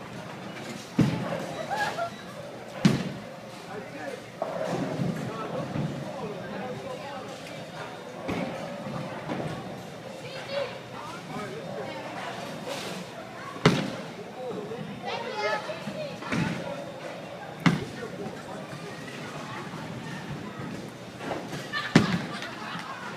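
Bowling pins crash and clatter in a large echoing hall.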